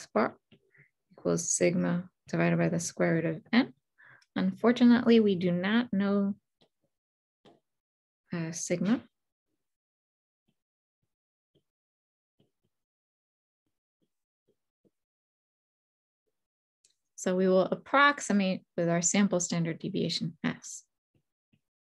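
A woman speaks calmly into a close microphone, explaining in bursts with pauses.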